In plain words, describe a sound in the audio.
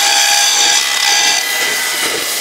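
An angle grinder cuts into metal with a high, harsh whine.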